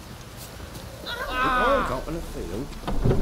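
A woman calls out nearby.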